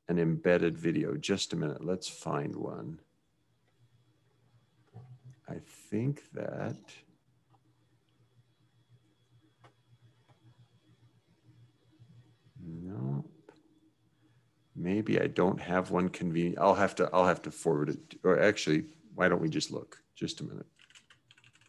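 A middle-aged man talks calmly over an online call, with pauses.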